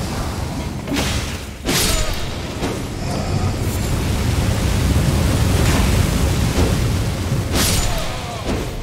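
A blade strikes with sharp, crackling bursts of magic.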